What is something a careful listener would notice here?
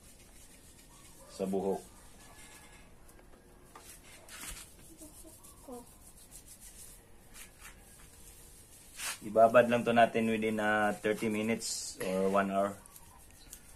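Fingers scratch through wet hair.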